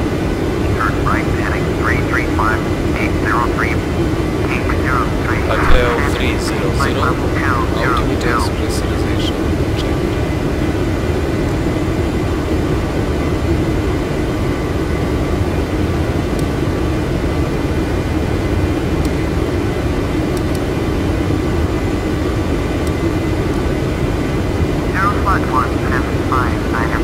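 Jet engines hum steadily inside a cockpit.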